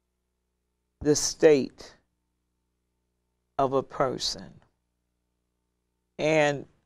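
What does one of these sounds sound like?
An older woman reads aloud slowly and calmly into a close microphone, with long pauses.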